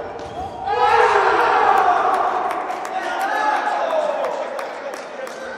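A crowd cheers loudly in an echoing indoor hall.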